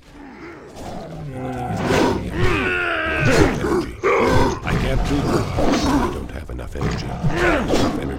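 Sword blows strike in a fight.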